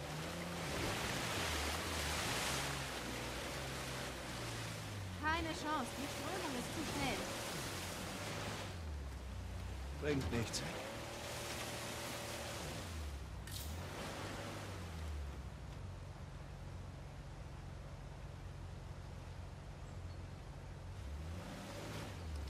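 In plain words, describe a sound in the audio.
Rushing water roars nearby.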